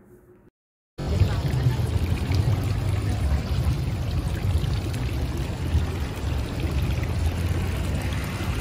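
Water splashes and gurgles steadily into a fountain basin.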